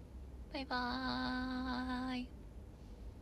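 A young woman hums a long, steady note close by.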